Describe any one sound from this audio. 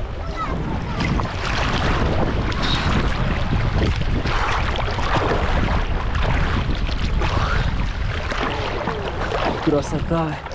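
Water splashes and sloshes as a swimmer moves.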